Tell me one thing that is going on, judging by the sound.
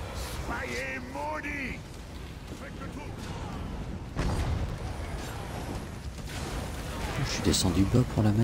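Spells and weapons clash and burst in a fast fight.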